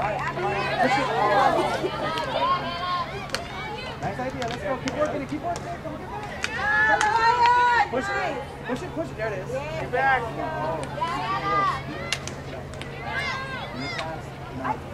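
Young women shout and call out to each other outdoors.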